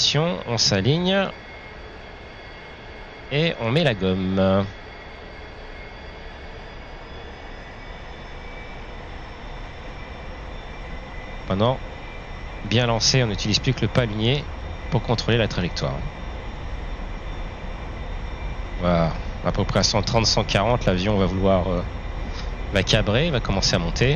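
A jet engine roars steadily and slowly rises in pitch.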